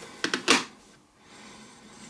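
A remote control button clicks.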